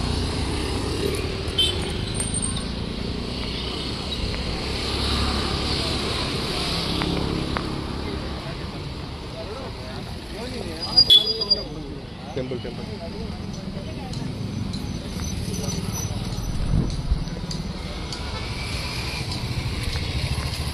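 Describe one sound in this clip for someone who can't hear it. Traffic rumbles past outdoors.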